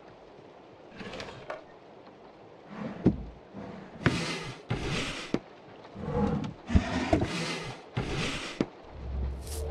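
Wooden drawers slide open and shut.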